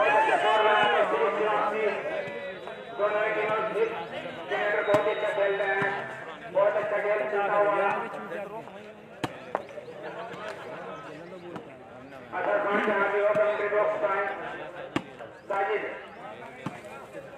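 A group of men chant loudly in short bursts outdoors.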